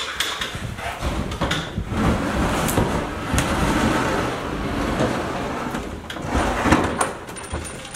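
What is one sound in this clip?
Furniture bumps and scrapes as men carry it out.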